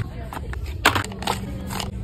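Plastic tubes clatter into a plastic basket.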